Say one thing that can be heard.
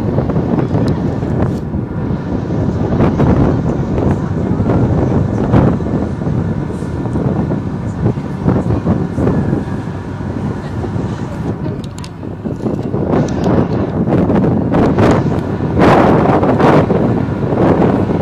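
A large bus engine rumbles as the bus drives nearby.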